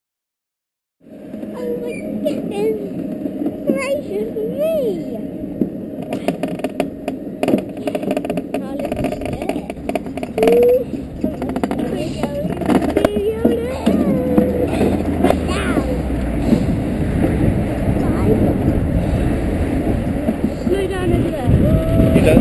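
A toboggan rumbles and rattles down a metal track.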